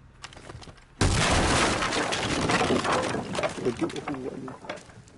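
Wood splinters and crashes as a floor hatch is smashed open.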